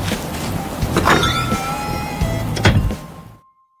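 A door opens with a soft chime.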